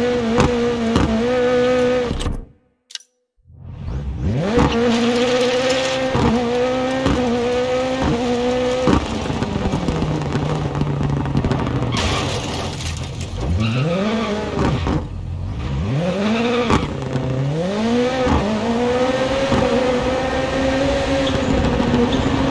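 A rally car engine roars and revs hard through gear changes.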